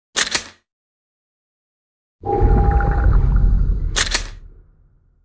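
A short electronic menu click sounds.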